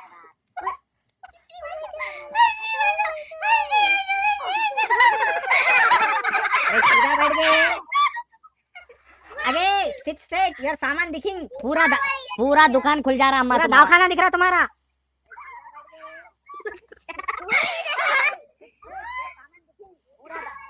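Young girls laugh and squeal through an online call.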